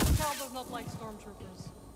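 A lightsaber hums.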